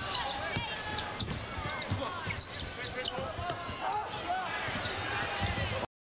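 A basketball bounces on the court with dull thuds.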